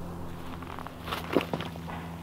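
Footsteps scuff on rock nearby.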